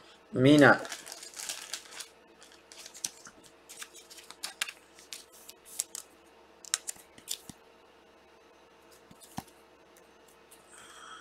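Trading cards rustle and tap as hands shuffle them.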